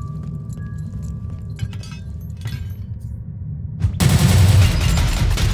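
Magic spells crackle and whoosh in a game.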